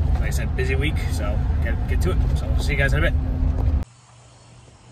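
A man talks calmly close by inside a moving car.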